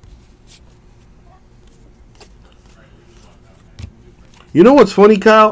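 Trading cards rustle and slide softly as they are flipped through by hand.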